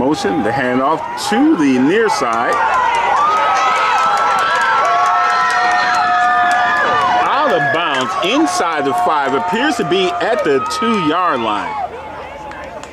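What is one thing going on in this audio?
A crowd of spectators cheers and shouts loudly nearby.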